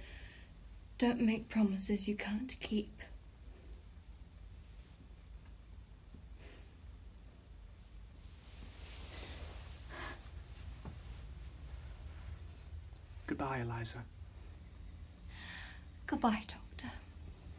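A young woman speaks softly, close by, with emotion.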